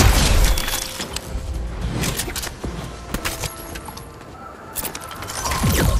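Loose items are picked up with short chimes.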